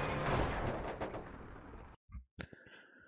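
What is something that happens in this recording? A rally car engine roars and fades.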